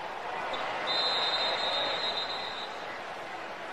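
A referee's whistle blows a long steady blast.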